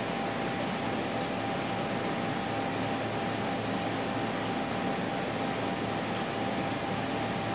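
Shrimp shells crackle softly as fingers peel them.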